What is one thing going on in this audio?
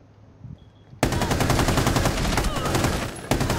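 A rifle fires a loud shot.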